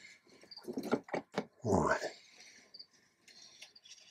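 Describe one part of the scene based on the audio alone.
A plastic box is set down with a light clatter on a hard surface.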